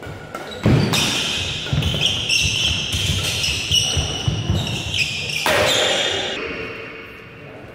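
Rackets strike a shuttlecock in a quick rally.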